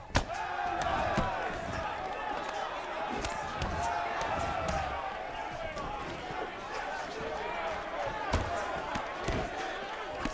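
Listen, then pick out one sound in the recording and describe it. Punches land with dull, heavy thuds.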